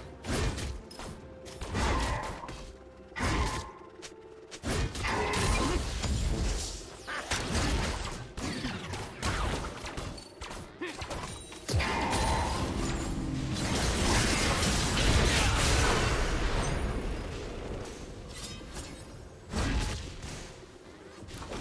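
Spell effects crackle and burst in a fast game fight.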